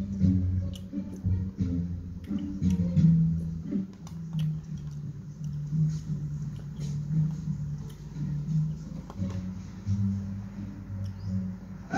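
A young man eats with a spoon, chewing noisily close by.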